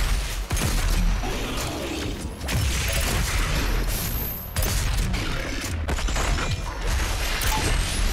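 Explosions burst with heavy rumbling roars.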